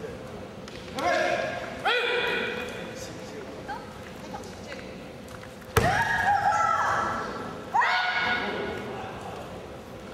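Kendo fencers shout loud, drawn-out battle cries.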